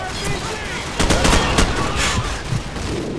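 A grenade explodes with a loud boom.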